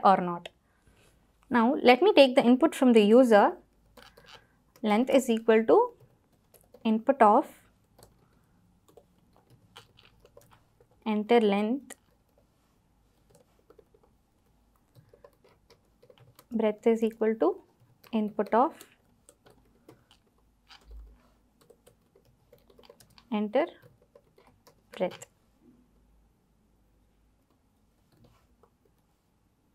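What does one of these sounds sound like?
Laptop keys click as a young woman types.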